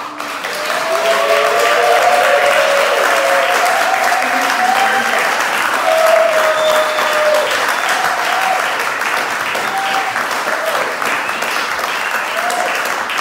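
A piano plays.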